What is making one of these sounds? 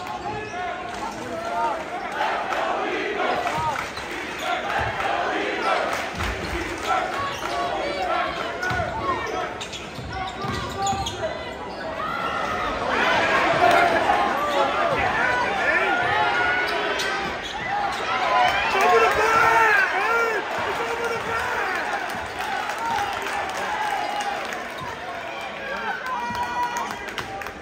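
A crowd in a large echoing gym chatters and cheers.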